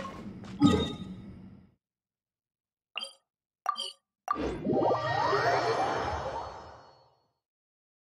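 Short electronic menu chimes and whooshes sound from a game.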